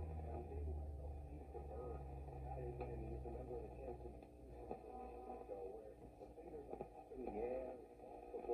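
An old radio plays crackly, warbling sounds as its dials are tuned.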